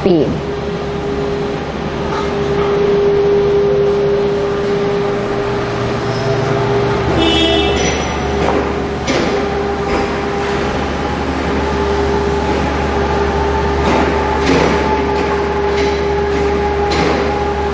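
Plastic bottles rattle and clink against a metal rim.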